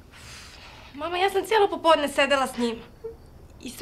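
A woman speaks tearfully, close by.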